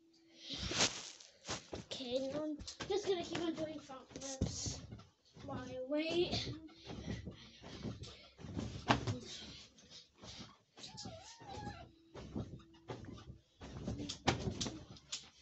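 A young boy jumps and lands with thumps on a bed.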